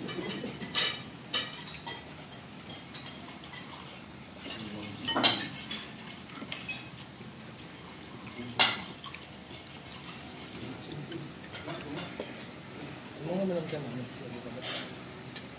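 Fingers pick and scrape at food on a plate.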